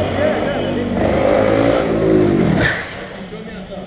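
A second go-kart engine approaches and passes nearby.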